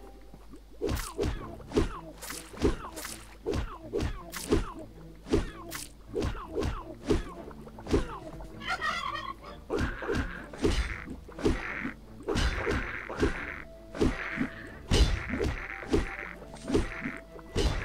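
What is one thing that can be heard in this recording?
Punchy video game hit effects land repeatedly.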